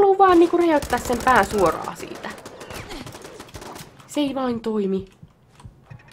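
A pistol fires several sharp shots in quick succession.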